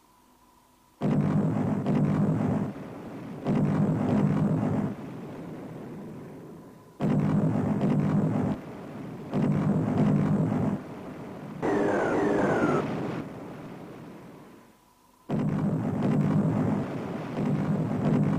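Heavy guns boom in repeated long, rumbling bursts.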